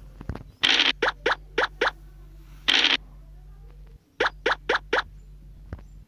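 A game piece taps along in quick, short hops.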